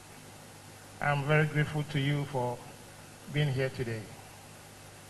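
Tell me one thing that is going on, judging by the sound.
An older man speaks slowly and solemnly into a microphone.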